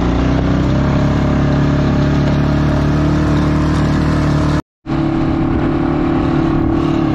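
A small engine hums steadily close by.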